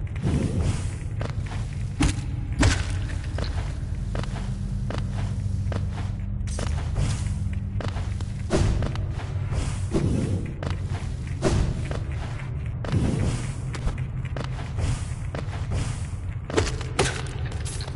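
A blade slashes with quick, sharp swishes.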